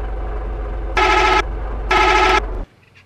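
A bus horn honks twice.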